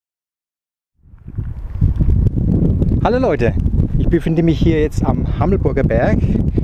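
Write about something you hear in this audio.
Wind rumbles heavily across a nearby microphone outdoors.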